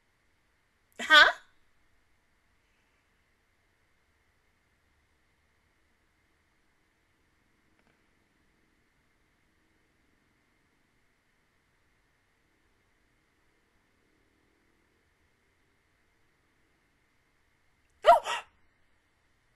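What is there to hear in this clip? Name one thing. A young woman gives two short bursts of voice close to a microphone.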